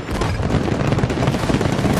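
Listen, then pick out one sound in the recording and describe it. An explosion booms with a deep rumble.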